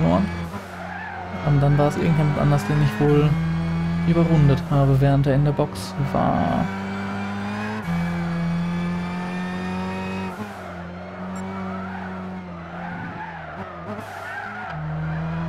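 A racing car engine roars at high revs, rising and falling as it shifts gears.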